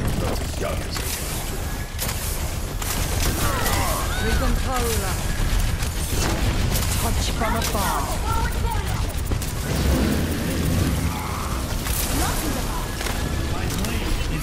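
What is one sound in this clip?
Game weapons fire in rapid bursts.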